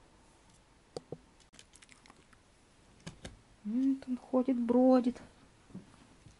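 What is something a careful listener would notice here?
Small puppies' paws patter and scratch on a wooden tray.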